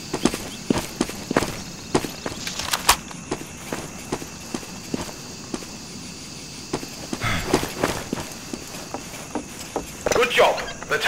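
Footsteps tread steadily on the ground.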